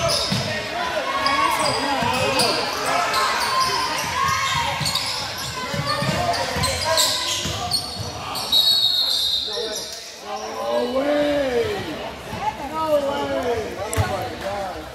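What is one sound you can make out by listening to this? A crowd of spectators chatters and cheers nearby.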